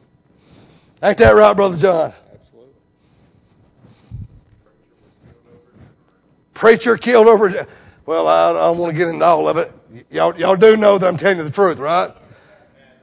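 A middle-aged man preaches with animation through a lapel microphone.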